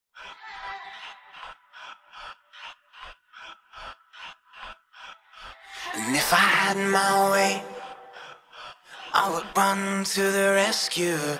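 A keyboard plays synth chords.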